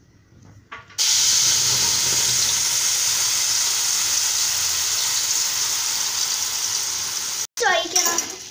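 Batter pours into a hot pan and sizzles loudly.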